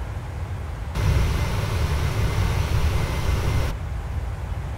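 A jet engine roars louder from outside.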